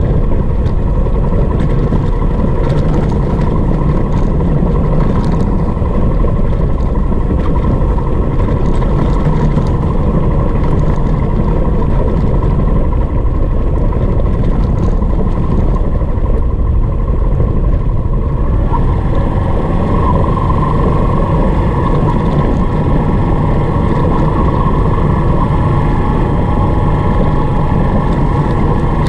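Tyres crunch and rattle over loose gravel.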